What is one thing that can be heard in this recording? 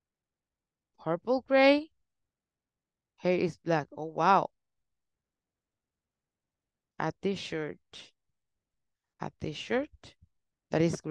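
A young woman speaks slowly and clearly over an online call, pausing between phrases.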